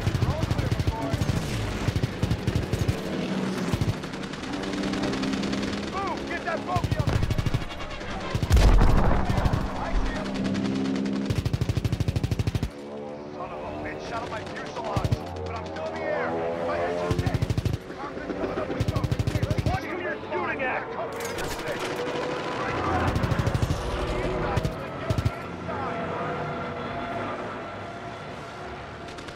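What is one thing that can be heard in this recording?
A propeller plane's engine drones steadily, rising and falling in pitch.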